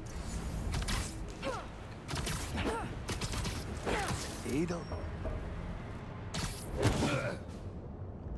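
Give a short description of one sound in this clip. Punches land with heavy thuds in a fight.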